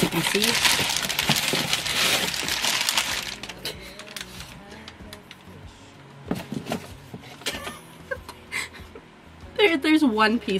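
Paper packing crinkles and rustles loudly close by.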